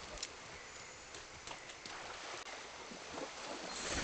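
Water splashes as someone wades through a shallow stream.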